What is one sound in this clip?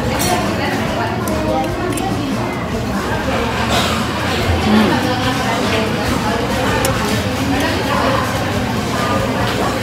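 A metal spoon clinks against a plate.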